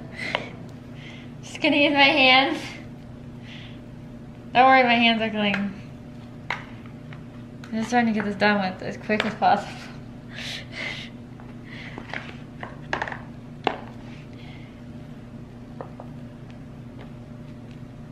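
Soft cream squishes as it is spread by hand.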